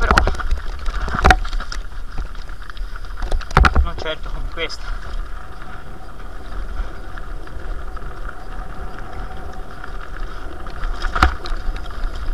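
A bicycle frame rattles and clunks over bumps.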